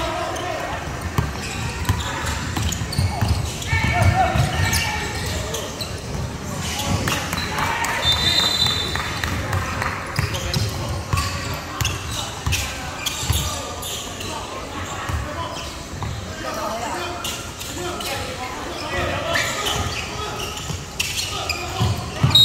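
A basketball bounces on a wooden floor in a large echoing hall.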